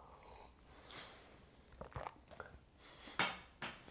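A mug clinks down on a tabletop.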